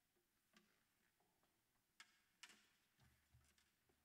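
A guitar bumps and its strings buzz softly as it is picked up.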